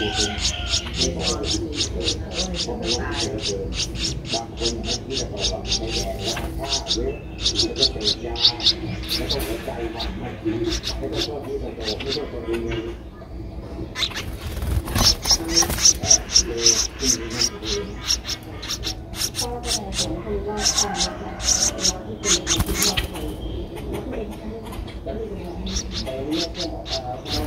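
A baby bird cheeps rapidly and shrilly, begging close by.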